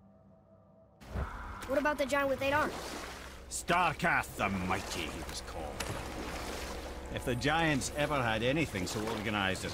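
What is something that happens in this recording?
Water laps and splashes against a small rowing boat.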